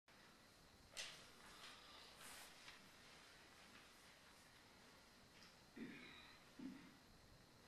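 A grand piano plays softly in a large hall.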